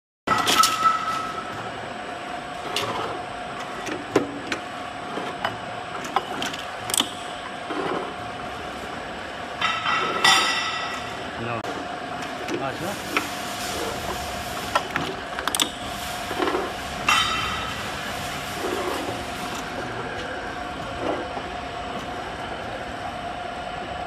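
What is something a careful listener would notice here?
Glass bottles clink and knock against metal parts of a machine.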